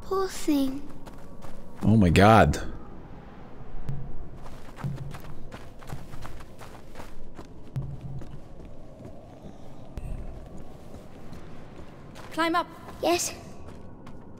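A young woman speaks softly, then calls out urgently.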